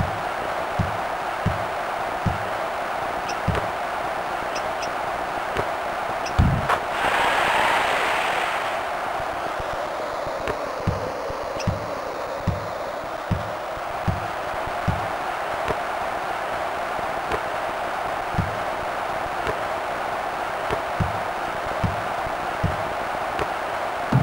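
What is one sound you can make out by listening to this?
A basketball thumps on a wooden court in a steady dribbling rhythm.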